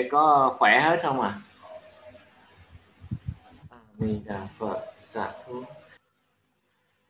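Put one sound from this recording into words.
A man speaks over an online call, in a chanting voice.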